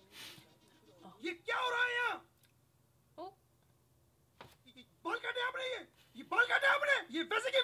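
A man shouts angrily, heard through a speaker.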